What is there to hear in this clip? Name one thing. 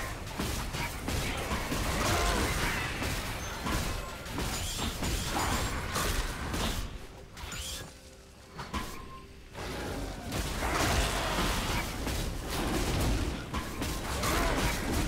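Spell effects whoosh and crackle in a game battle.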